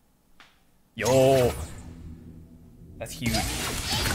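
Upbeat electronic music plays from an arcade game.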